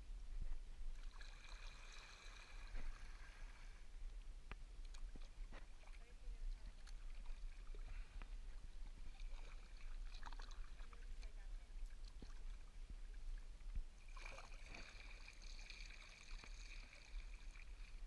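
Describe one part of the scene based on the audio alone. A paddle splashes and dips into the water.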